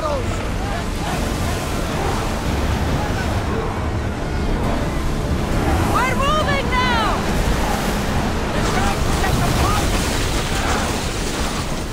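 Fire crackles on a ship's deck.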